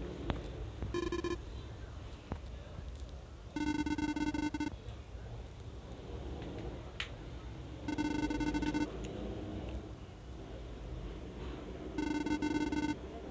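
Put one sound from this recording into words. Electronic beeps chatter in quick bursts, like a game character talking.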